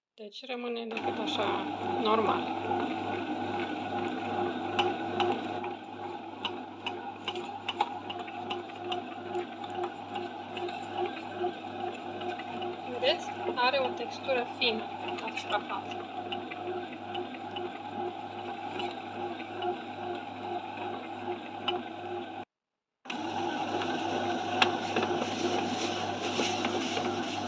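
A bread machine's motor hums steadily as it kneads dough.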